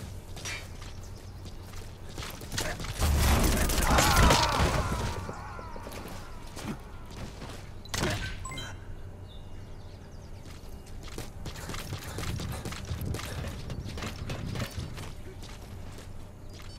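Footsteps thud on metal stairs and concrete as a soldier climbs.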